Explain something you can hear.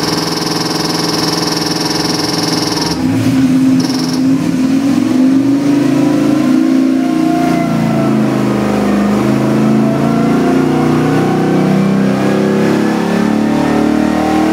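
An engine idles, then revs up loudly and its roar rises steadily in pitch.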